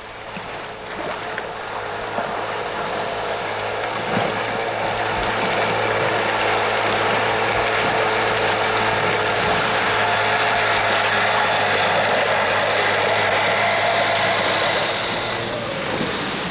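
A motorboat engine hums steadily across the water.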